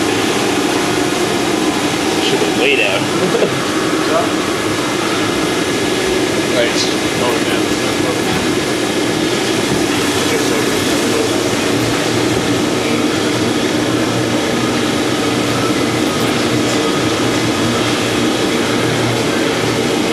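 Water sprays and hisses steadily inside a metal tank, echoing off the walls.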